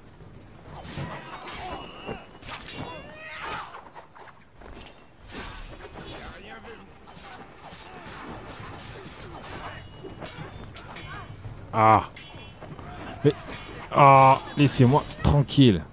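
Swords clash and slash rapidly in a fight.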